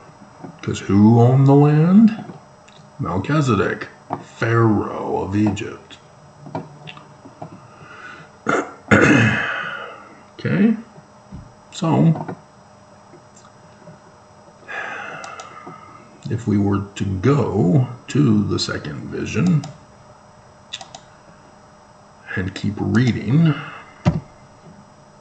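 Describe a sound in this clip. A middle-aged man speaks calmly and earnestly close to a microphone, with pauses.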